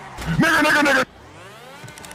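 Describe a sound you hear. A young man shouts loudly into a microphone.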